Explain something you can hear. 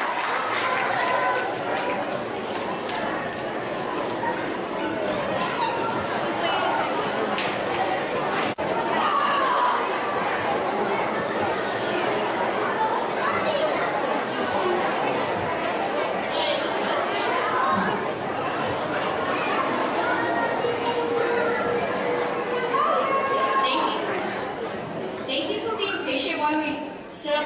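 A crowd of children chatters and laughs loudly.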